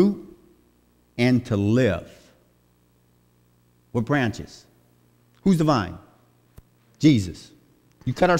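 A man speaks with animation into a microphone, in short bursts with pauses, in a reverberant hall.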